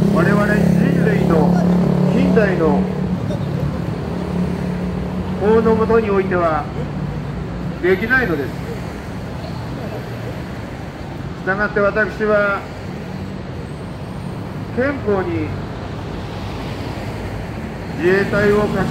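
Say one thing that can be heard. City traffic hums steadily in the background.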